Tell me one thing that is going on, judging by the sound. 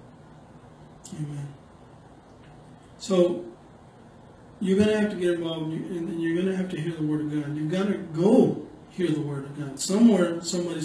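A middle-aged man speaks calmly into a microphone close by.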